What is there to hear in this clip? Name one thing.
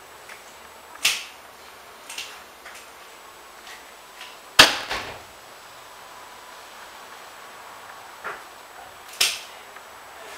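Kitchen scissors snip through the fins of a raw fish.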